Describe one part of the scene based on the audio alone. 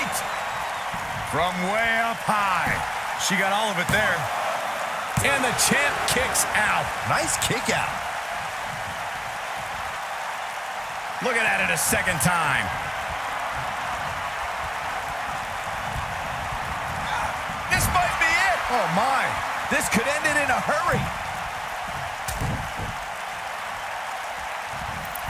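A large arena crowd roars.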